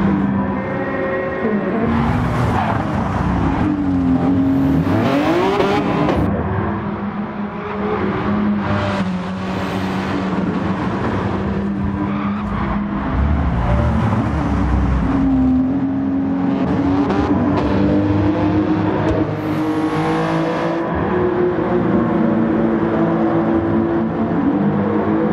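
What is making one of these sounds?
A racing car engine roars and revs up and down steadily.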